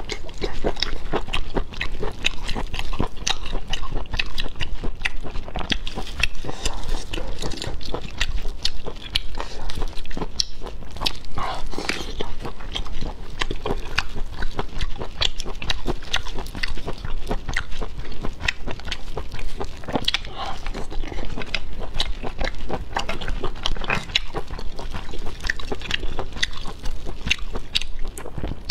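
A young woman chews and slurps seafood close to a microphone.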